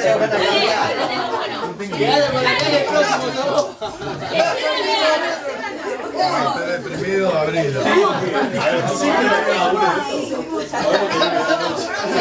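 Several young people talk and chatter at once indoors, close by.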